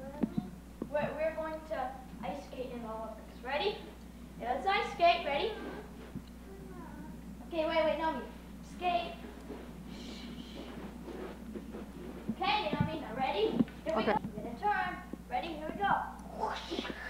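A boy talks playfully nearby.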